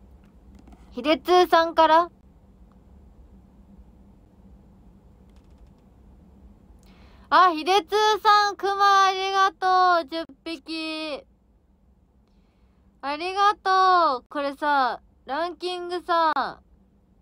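A young woman speaks close to the microphone, in short bursts.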